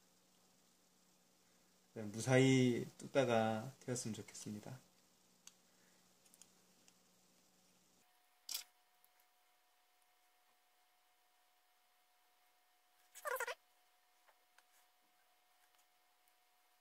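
Small plastic parts click and rattle as they are pried apart by hand.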